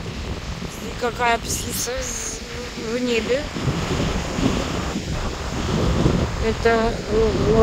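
Seagulls cry out loudly overhead.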